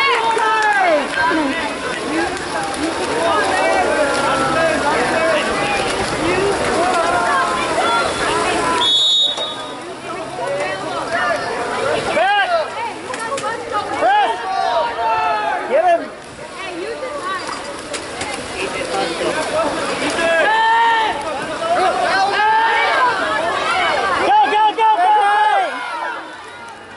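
Water splashes and churns as swimmers race through a pool.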